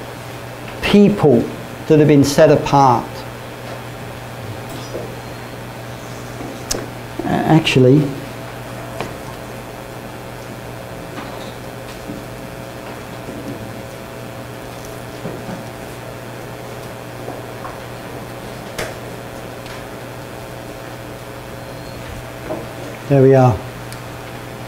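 A middle-aged man speaks in short bursts to a room, with long pauses between.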